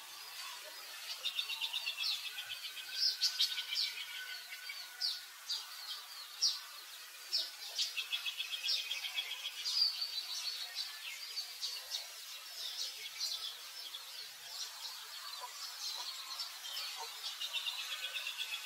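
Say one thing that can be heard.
A newborn monkey squeaks in high, thin cries.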